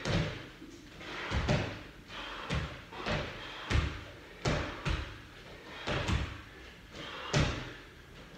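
Feet land with heavy thuds on a padded floor, again and again.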